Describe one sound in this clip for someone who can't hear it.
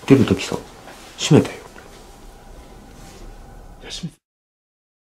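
A young man speaks in a low, tense voice close by.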